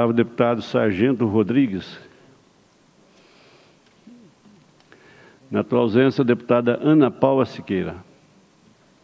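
A man speaks formally into a microphone, with brief pauses.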